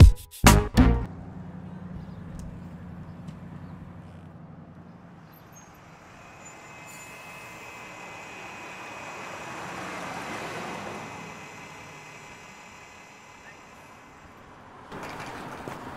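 A bus engine rumbles as the bus pulls up and idles.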